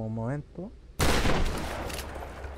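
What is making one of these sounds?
Wooden planks splinter and crash apart.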